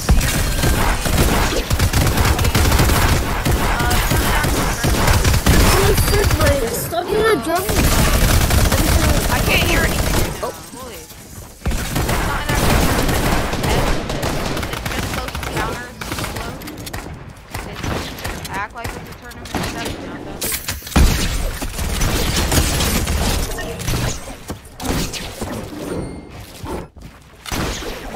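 Game building pieces snap into place in quick succession.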